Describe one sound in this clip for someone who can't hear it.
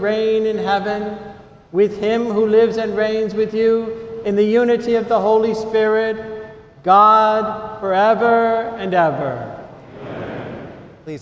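An elderly man chants a prayer in a steady sung tone, echoing in a large hall.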